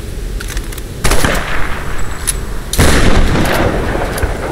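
Loud gunshots blast.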